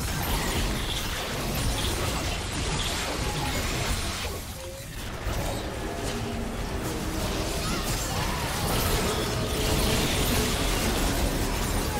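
Loud blasts and impacts burst.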